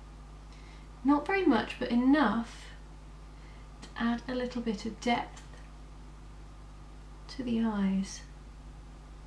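A young woman speaks calmly and close to a microphone, in short bursts.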